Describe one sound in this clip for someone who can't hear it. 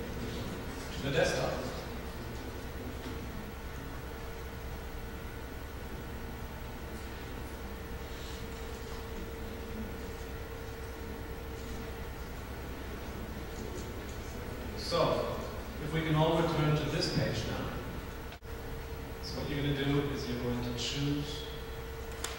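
A man speaks calmly over loudspeakers in a large echoing hall, in short bursts.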